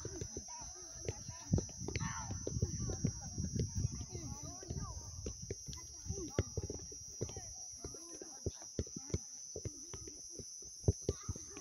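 A football thumps softly as it is kicked across grass.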